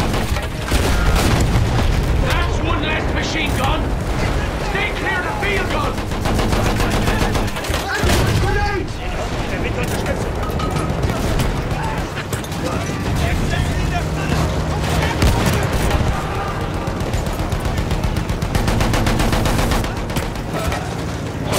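A tank engine rumbles and clanks steadily.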